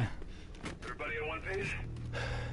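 A man speaks calmly through a radio.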